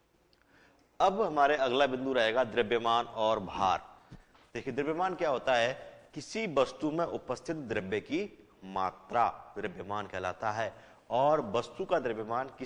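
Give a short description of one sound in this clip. A man lectures with animation, close to a microphone.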